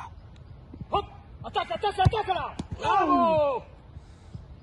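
A man shouts nearby outdoors.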